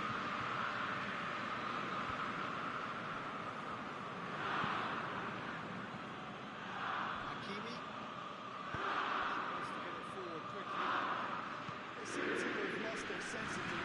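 A large stadium crowd roars steadily, swelling now and then.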